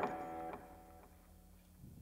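A band's last electric guitar chord rings out and fades.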